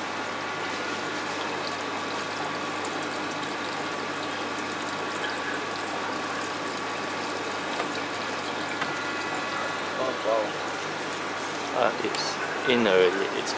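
Aquarium pumps hum steadily.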